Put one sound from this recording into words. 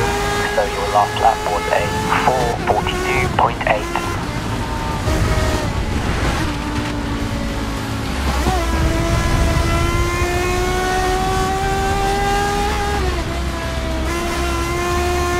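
A racing car engine whines at high speed and shifts pitch as it changes gear.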